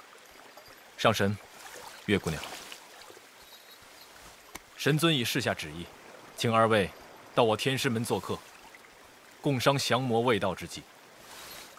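A young man speaks calmly and earnestly, close by.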